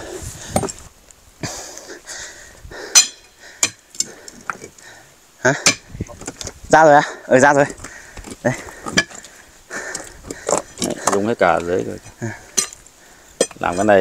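A pickaxe knocks into hard dirt.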